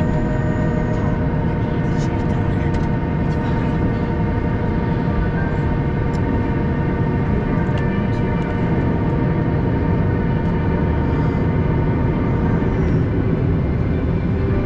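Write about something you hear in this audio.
Airliner wheels rumble over the runway.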